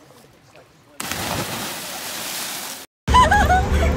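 Several people splash into the water at once.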